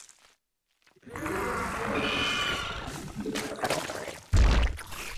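Game battle effects clatter and crackle.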